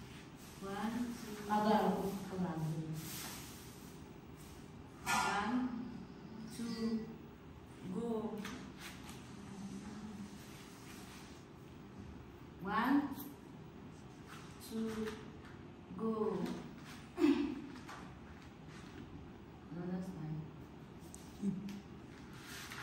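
A girl speaks nearby in short phrases.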